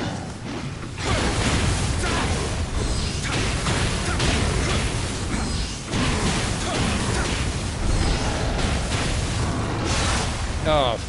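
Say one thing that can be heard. Fiery explosions burst and roar.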